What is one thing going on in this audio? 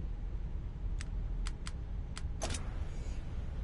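Short menu clicks sound in quick succession.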